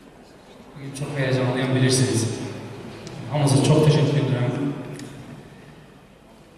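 A man speaks into a microphone, heard through loudspeakers in a large hall.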